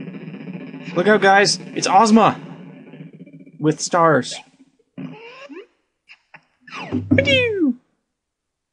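Bright electronic sound effects sweep up and down in pitch.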